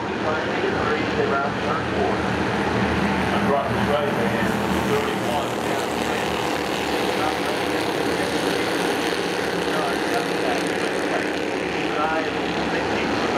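A pack of race car engines roars loudly and steadily.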